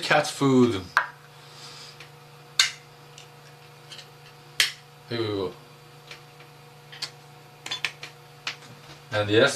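Small objects clink and tap in a man's hands.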